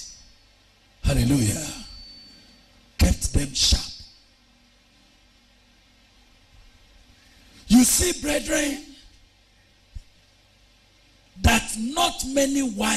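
A man preaches loudly and with animation into a microphone, in bursts with pauses, in a reverberant hall.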